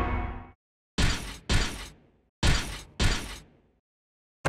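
Heavy footsteps in metal armour clank on stone.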